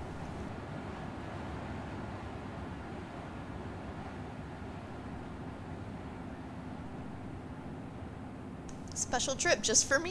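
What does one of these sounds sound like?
Waves roll and wash against a barge.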